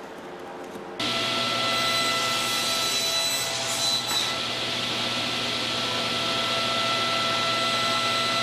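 A table saw motor hums steadily and loudly.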